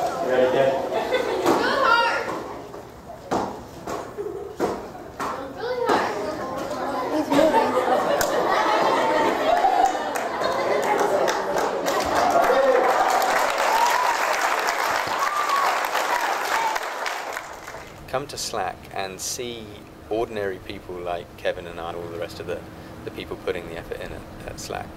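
A young man talks with animation to an audience in a large room.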